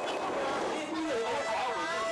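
A young girl cries out in distress.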